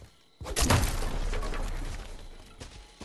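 A wooden door bangs open.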